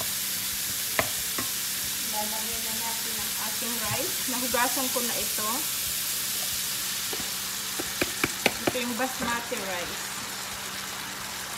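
A wooden spatula knocks and scrapes against a pan.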